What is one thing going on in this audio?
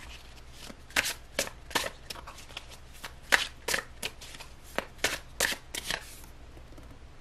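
Playing cards shuffle with quick crisp clicks.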